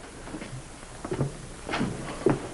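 A man speaks briefly in a low voice nearby.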